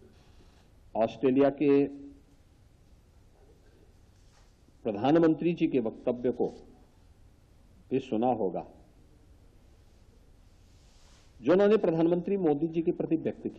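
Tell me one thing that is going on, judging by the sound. A middle-aged man speaks firmly into a microphone in short bursts with pauses between them.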